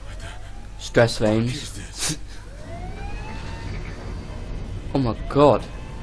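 A man shouts in confusion.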